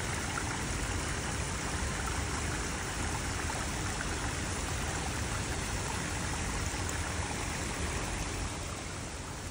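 A small stream trickles and splashes over rocks.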